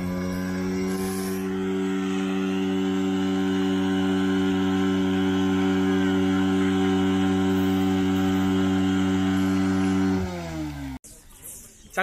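A motorbike engine hums steadily and winds down.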